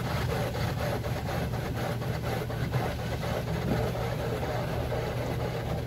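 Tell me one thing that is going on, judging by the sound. A windshield wiper sweeps across the glass.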